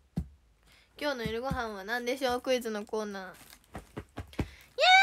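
A young girl sings close by.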